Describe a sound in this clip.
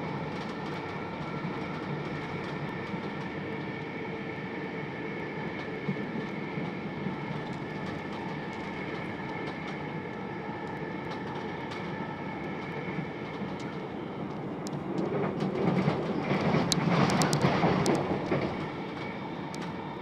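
Wheels clatter over rail joints.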